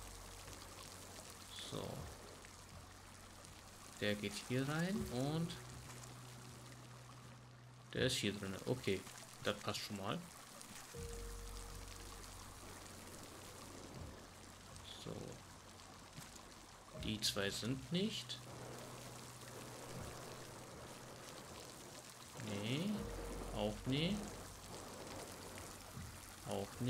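Bubbles gurgle and rise underwater.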